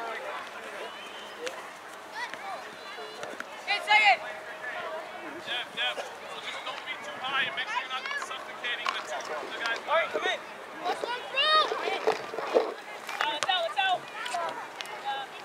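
Adult and child spectators shout and cheer excitedly outdoors.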